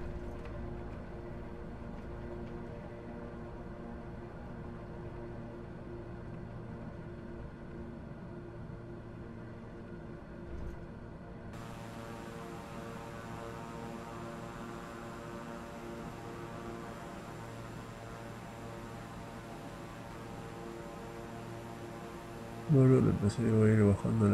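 Twin turboprop engines drone in cruise.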